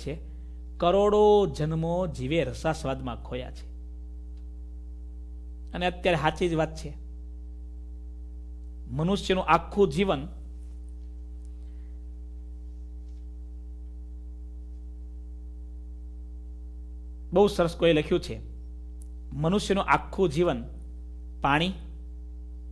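A man speaks calmly into a close microphone, in short phrases with long pauses.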